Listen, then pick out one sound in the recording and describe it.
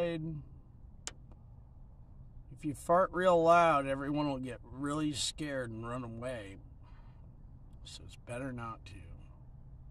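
A man speaks close to the microphone in a slow, drawn-out voice.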